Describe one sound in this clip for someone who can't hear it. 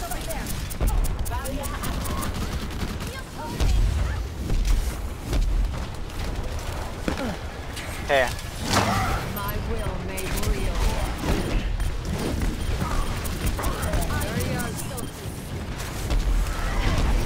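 Gunfire and explosions crackle and boom throughout.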